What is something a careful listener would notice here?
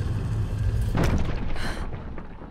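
A stone mechanism clanks shut.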